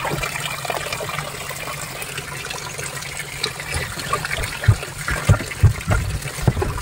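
Water churns and bubbles steadily.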